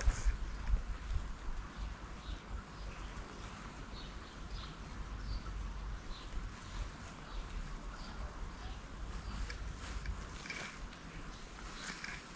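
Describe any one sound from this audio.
Wind buffets the microphone outdoors in low gusts.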